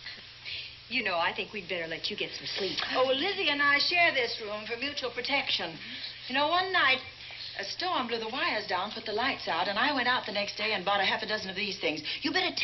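Women talk with animation in a room.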